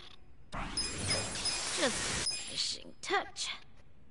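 A bright game sound effect swells and chimes as an upgrade completes.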